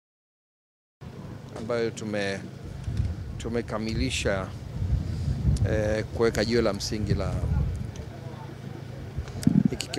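A man speaks calmly into microphones outdoors.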